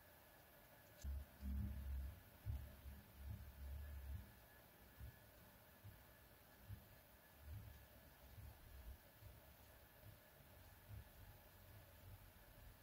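A marker rubs and bumps softly across paper.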